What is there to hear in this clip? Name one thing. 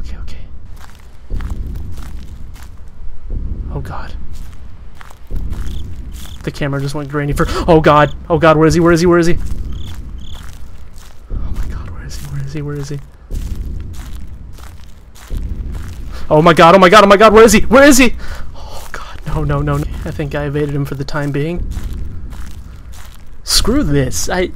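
Footsteps crunch steadily on a forest floor.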